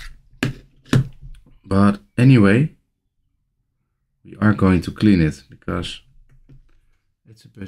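Plastic clicks and taps as a small handheld case is handled.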